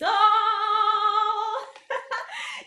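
A young woman sings a few drawn-out notes.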